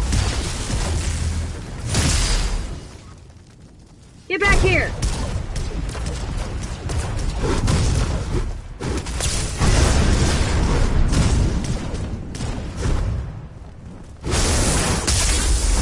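Flames crackle and roar nearby.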